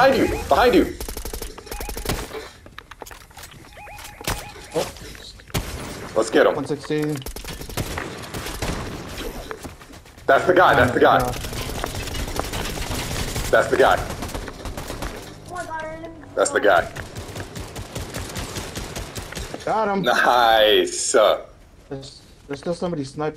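Rapid gunshots crack in short bursts.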